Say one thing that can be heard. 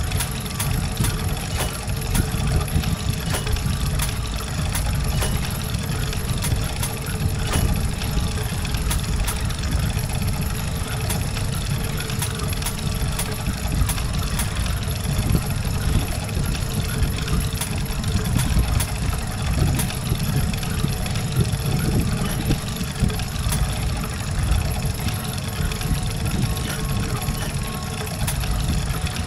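Small metal gears click into place on a board.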